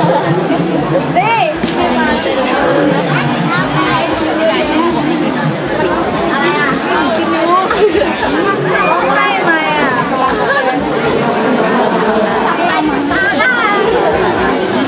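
Children and women call out excitedly over the crowd.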